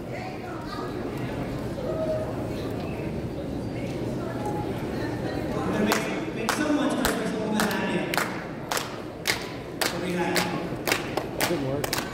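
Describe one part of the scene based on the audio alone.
A crowd of adults and children murmurs and chatters in a large echoing hall.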